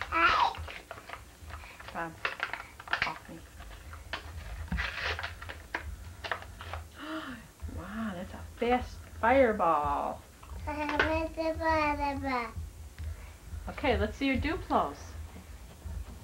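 A young woman talks playfully close by.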